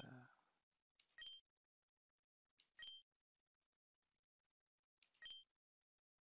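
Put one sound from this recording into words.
A short electronic chime sounds as game text advances, several times.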